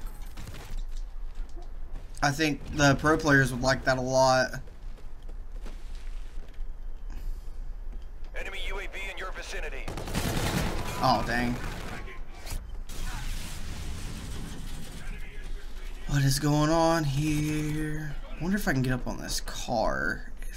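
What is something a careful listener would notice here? Gunfire and explosions crack and boom from a video game.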